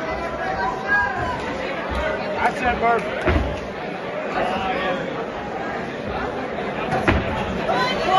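Boxing gloves thud against a boxer.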